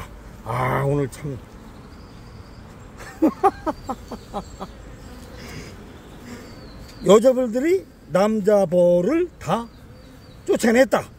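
Honeybees buzz in a dense swarm close by.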